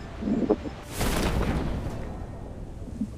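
A parachute snaps open with a loud whoosh.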